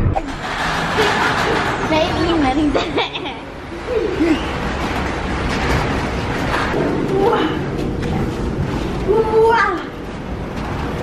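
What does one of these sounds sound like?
A young girl talks and laughs with animation close by.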